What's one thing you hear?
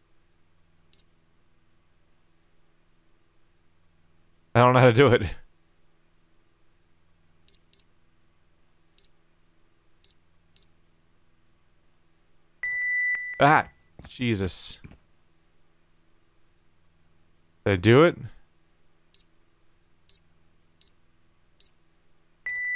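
Keypad buttons beep with short, high electronic tones.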